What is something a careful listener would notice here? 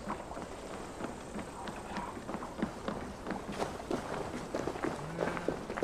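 Footsteps thud steadily on wooden planks.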